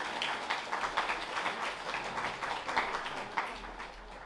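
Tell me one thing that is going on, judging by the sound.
An elderly woman speaks through a microphone over loudspeakers.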